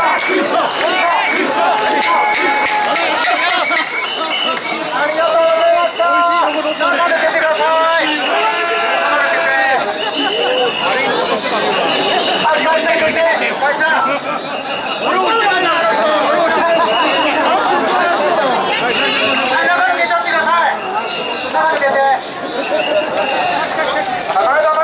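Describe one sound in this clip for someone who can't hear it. A large crowd of men and women chants loudly and rhythmically in unison, close by.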